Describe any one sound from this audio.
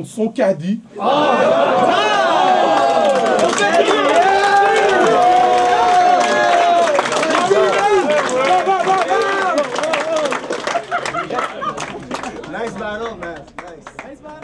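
A crowd cheers, shouts and whoops loudly.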